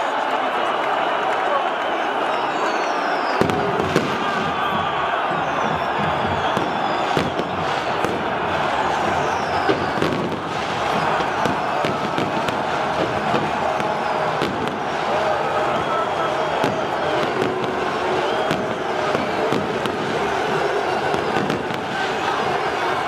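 A huge stadium crowd chants and roars loudly.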